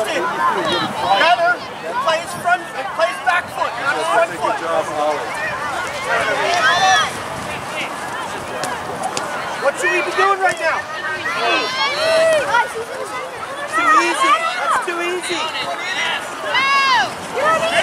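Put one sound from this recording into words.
Young players shout and call out to each other across an open outdoor field.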